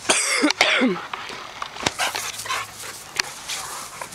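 Dogs pant close by.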